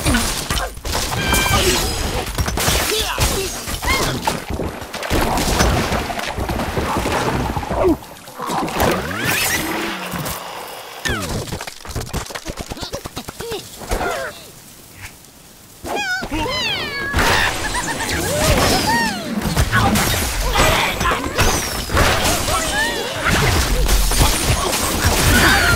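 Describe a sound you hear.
Game blocks crash and shatter in quick bursts.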